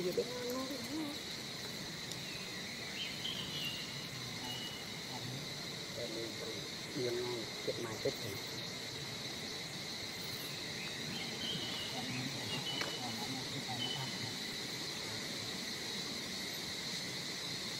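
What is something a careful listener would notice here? A monkey softly rustles through another monkey's fur while grooming.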